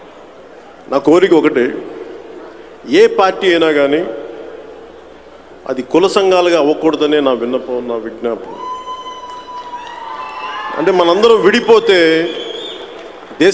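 A man speaks loudly and forcefully into a microphone over loudspeakers in a large echoing hall.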